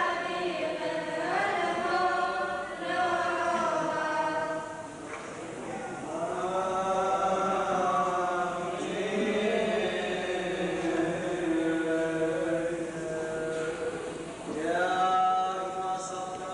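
A group of men chant together in a reverberant hall.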